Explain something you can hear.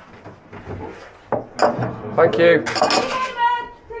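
Glasses clink together.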